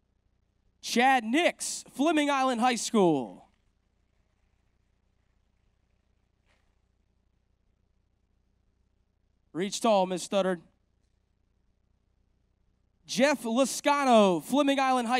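A man announces names over a loudspeaker in a large hall, pausing between them.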